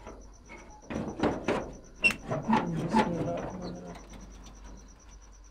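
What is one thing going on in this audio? A metal door latch rattles and clanks.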